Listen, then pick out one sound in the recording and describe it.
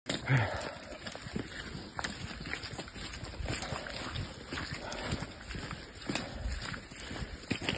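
Footsteps crunch on a rough path outdoors.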